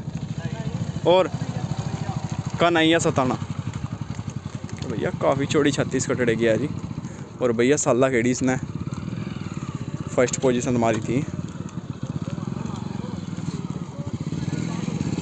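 A motorcycle engine idles and putters nearby.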